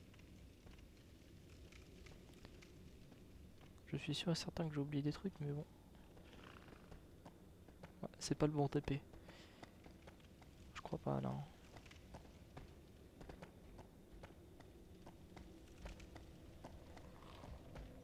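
Armoured footsteps thud on stone.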